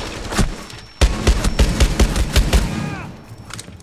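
Rapid gunfire bursts out in loud cracks.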